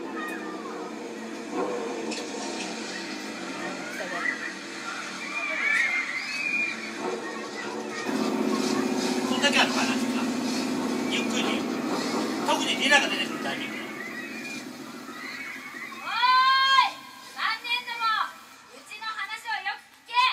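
Young women talk and laugh together over microphones.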